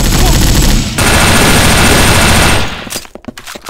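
An automatic rifle fires in a video game.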